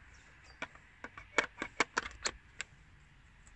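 A plastic cover clicks and snaps into place.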